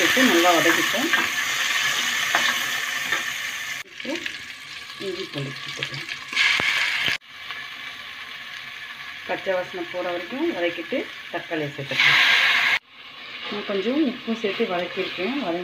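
A wooden spatula scrapes and stirs against a metal pot.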